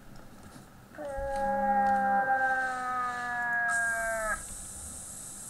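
A moose call is blown in a long, wavering low moan.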